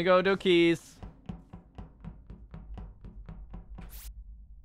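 Quick, light footsteps tap steadily.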